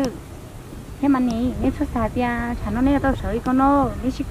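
A young woman talks nearby with animation.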